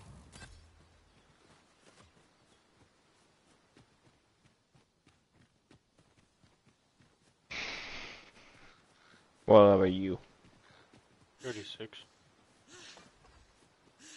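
Footsteps patter over grass and stone.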